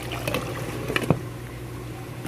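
A glass lid clinks down onto a metal pot.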